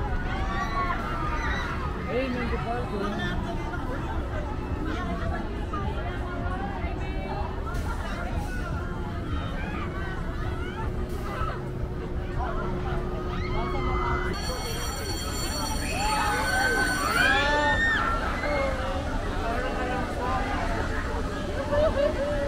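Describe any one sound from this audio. A crowd of people chatters outdoors all around.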